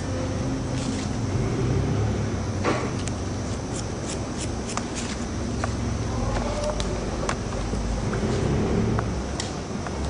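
Scissors snip through hair in quick, sharp clicks.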